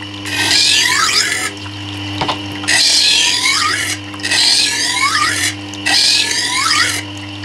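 A blade scrapes and hisses against a spinning grinding wheel in repeated strokes.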